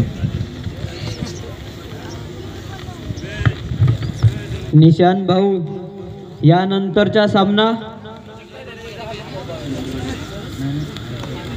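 A crowd chatters and calls out outdoors.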